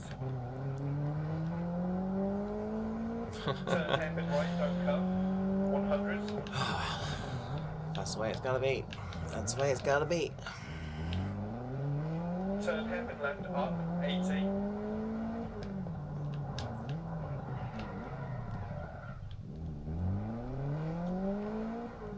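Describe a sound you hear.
A car engine revs up and down through the gears.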